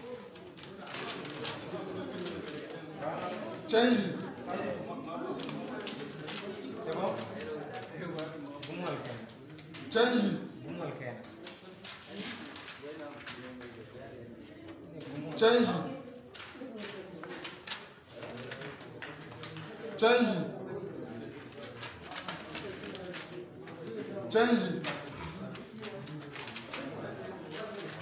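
Several men talk in the background.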